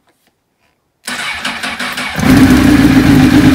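A motorcycle engine cranks and starts, then runs with a loud roar.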